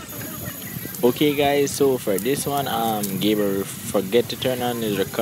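Young men chat casually nearby outdoors.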